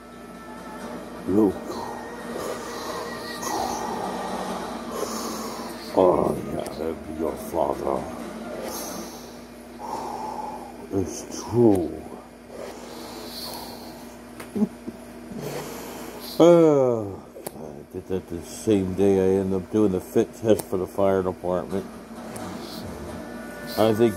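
Air hisses steadily from a breathing mask.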